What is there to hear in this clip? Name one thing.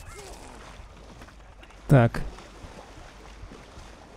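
Water splashes as creatures wade through a shallow pool.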